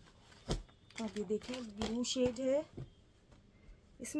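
Fabric rustles softly as it is unfolded.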